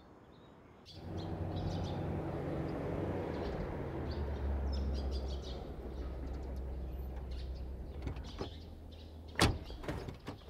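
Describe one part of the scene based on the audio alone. A car engine rumbles as a car drives up.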